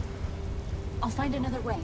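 A young woman answers quietly, close by.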